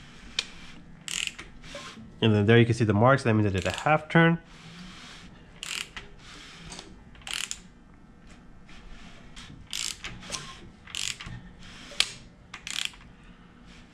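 A ratchet wrench clicks in short bursts.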